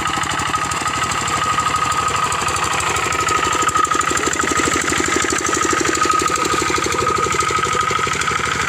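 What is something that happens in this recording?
A small diesel engine chugs steadily close by.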